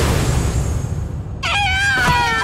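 A heavy blow lands with a crashing impact.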